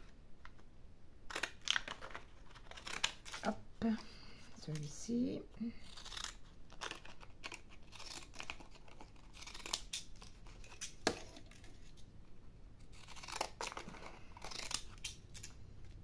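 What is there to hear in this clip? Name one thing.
A craft knife scrapes and slices through thin card.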